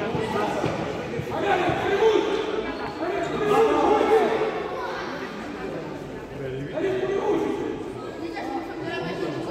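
A crowd of children and adults chatter and call out in a large echoing hall.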